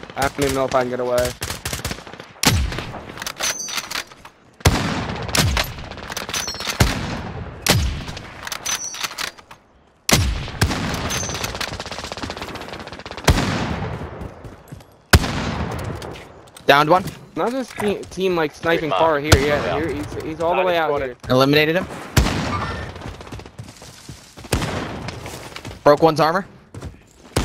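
Gunshots crack loudly and echo outdoors.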